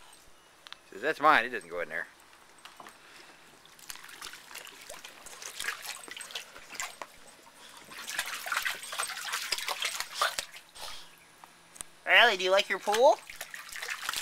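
A dog whines in rising and falling yelps.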